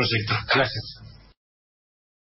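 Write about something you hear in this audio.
An older man speaks calmly.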